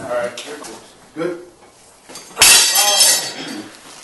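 A metal weight clanks against the floor.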